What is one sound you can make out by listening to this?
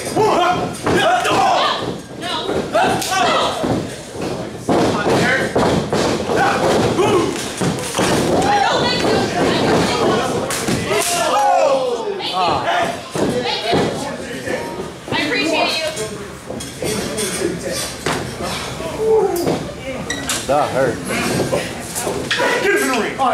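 A crowd of men cheers and shouts.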